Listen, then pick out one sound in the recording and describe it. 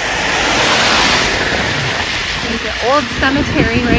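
A bus drives past with its tyres hissing on a wet road.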